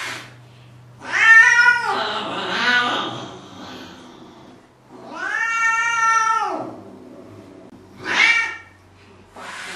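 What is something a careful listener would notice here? A cat yowls loudly and plaintively.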